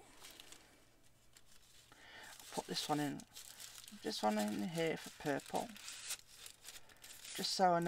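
A thin plastic bag crinkles and rustles as it is handled.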